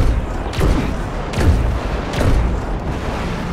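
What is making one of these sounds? Loud blasts boom and echo.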